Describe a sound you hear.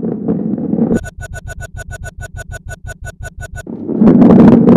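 A ball bumps quickly and evenly over a row of tiles.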